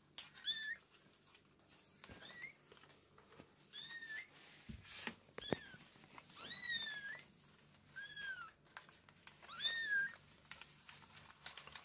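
Kittens rustle on a cloth.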